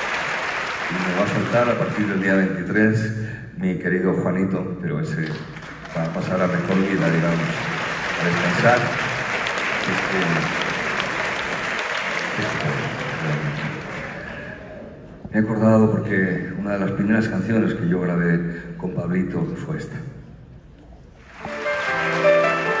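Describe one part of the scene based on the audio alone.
An elderly man sings into a microphone over loudspeakers in a large hall.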